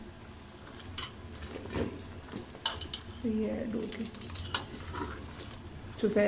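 A metal ladle scrapes and clinks against a metal pot.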